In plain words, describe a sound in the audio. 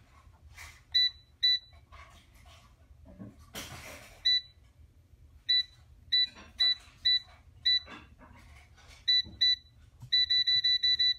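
A control panel beeps sharply as buttons are pressed.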